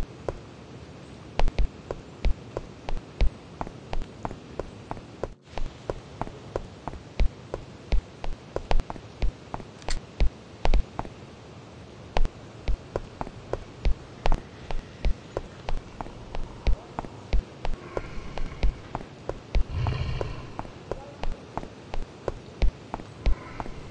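Footsteps thud quickly and steadily as a game character runs.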